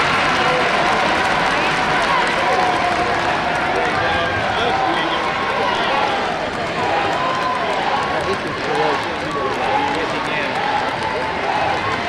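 A basketball bounces on a hardwood floor.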